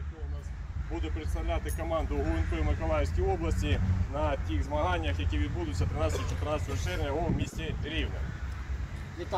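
A man reads out loudly outdoors.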